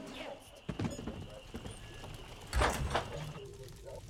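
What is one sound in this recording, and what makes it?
A wooden door opens with a thud.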